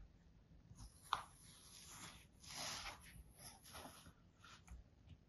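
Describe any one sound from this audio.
A knife scrapes and cuts through sand.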